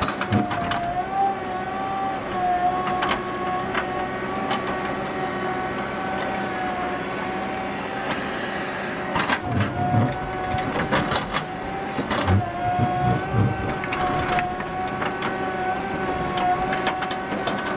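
A digger bucket scrapes and grinds through stony soil.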